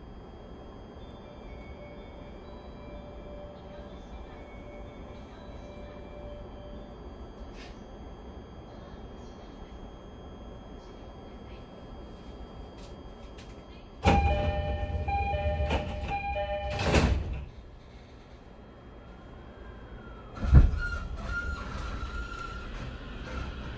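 A train rumbles along steadily.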